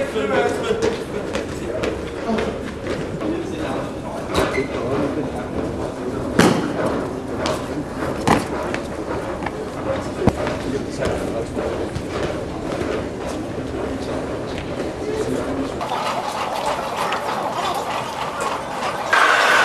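Footsteps shuffle and tap on a hard floor in an echoing underground hall.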